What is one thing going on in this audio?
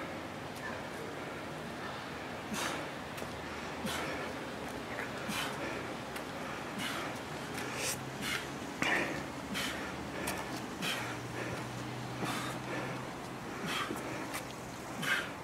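A man breathes hard with effort.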